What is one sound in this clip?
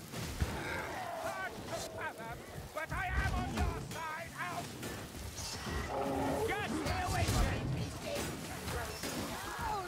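Blades hack and clash in a close fight.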